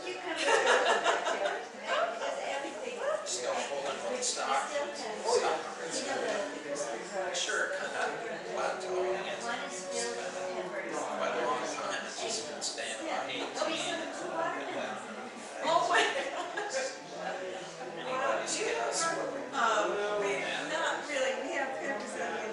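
A man talks with animation in a large echoing hall.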